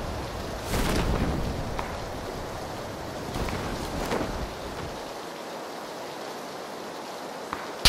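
Wind rushes loudly past during a parachute descent.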